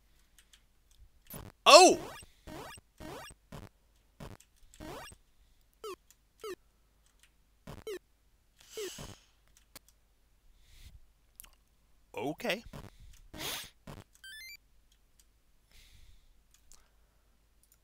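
Short electronic game sounds blip and chirp on and off.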